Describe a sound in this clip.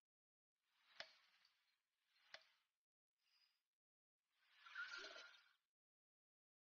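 Soft magical shimmering chimes sound with sharp clicks as game pieces snap into place.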